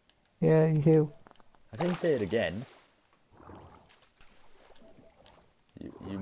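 Water splashes softly as a swimmer moves through it.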